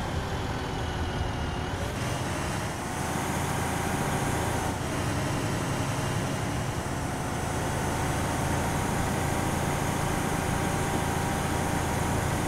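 An armoured vehicle's engine rumbles steadily as it drives along a road.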